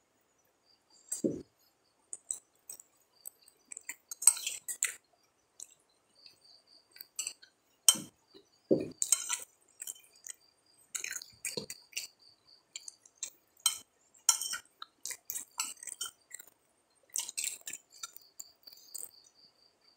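A young man chews food close by with wet smacking sounds.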